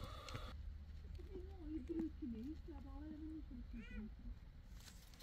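A chick peeps softly from inside a hatching egg.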